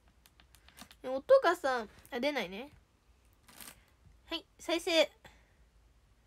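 A young girl speaks in a high voice close by, in short bursts.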